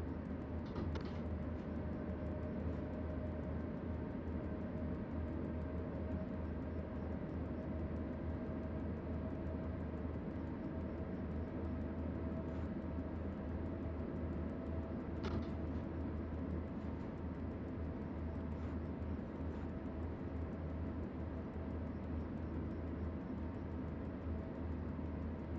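A train's electric engine hums and rumbles steadily while the train rolls along the track.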